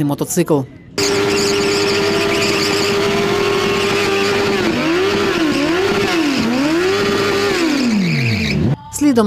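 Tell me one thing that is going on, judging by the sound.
A motorcycle engine roars at high revs, then revs up and down repeatedly.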